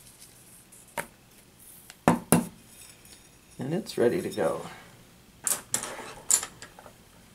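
A small metal dish clicks and taps as it is handled.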